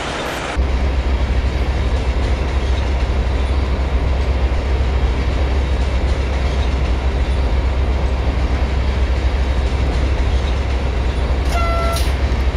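A train rumbles steadily along the tracks with a deep drone.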